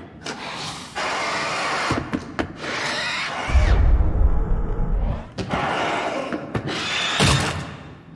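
A creature shrieks and snarls loudly.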